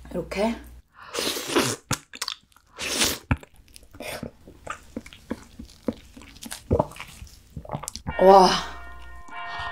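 A young woman hums with delight, close to a microphone.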